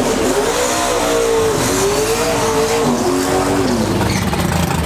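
Car engines rev up and down in bursts.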